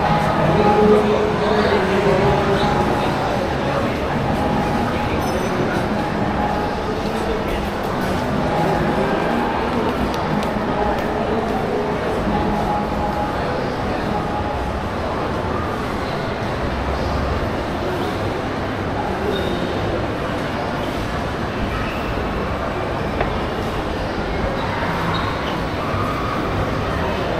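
People chatter in the distance in a large echoing hall.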